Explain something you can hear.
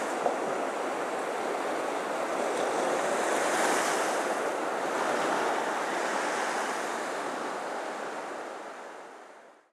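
Water ripples and washes steadily, then fades away.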